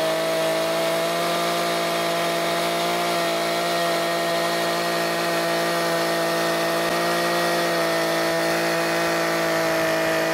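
An electric chainsaw runs with a steady high whine as it cuts into a wooden beam.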